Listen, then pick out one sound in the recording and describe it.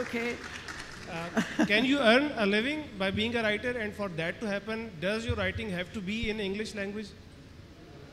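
A woman laughs and talks through a microphone.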